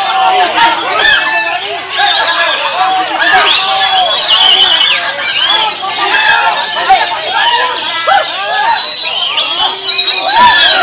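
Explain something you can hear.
A songbird sings a rapid, varied song of chirps and whistles.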